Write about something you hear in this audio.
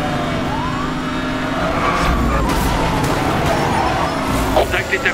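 A race car engine roars at high speed.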